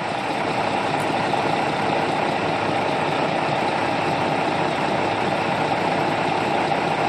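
A truck engine rumbles loudly and steadily nearby.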